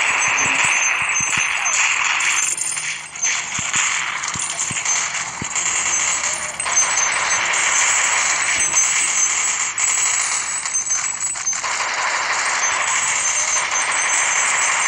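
Coins jingle as they are collected.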